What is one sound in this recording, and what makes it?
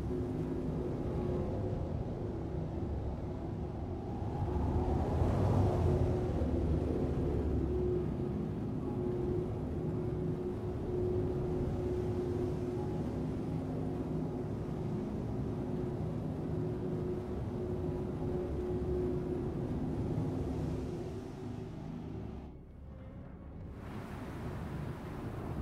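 A spacecraft engine hums steadily with a low drone.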